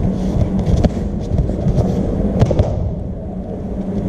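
A body thuds down onto a soft mat.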